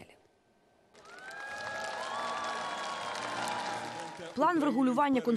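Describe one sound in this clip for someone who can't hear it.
A large crowd cheers in a big echoing hall.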